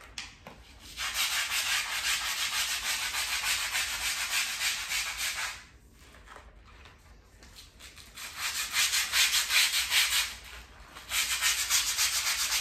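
A stiff brush scrubs rapidly against a tiled floor.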